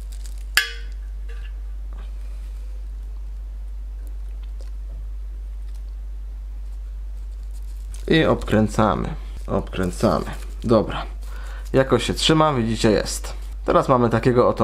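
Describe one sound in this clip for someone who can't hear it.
Thin paper rustles softly as it is rolled between fingers.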